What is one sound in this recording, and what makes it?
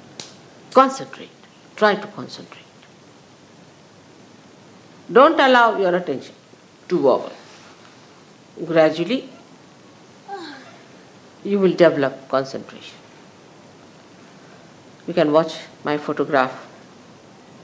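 An elderly woman speaks slowly and expressively into a close microphone, with long pauses.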